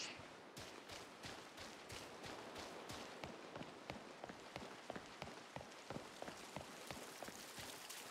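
Quick footsteps run steadily on a path.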